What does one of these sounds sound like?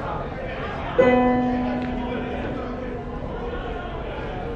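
A piano plays a short chord that rings out.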